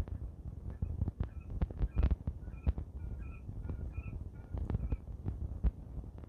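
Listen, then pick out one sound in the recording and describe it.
A quail chirps softly.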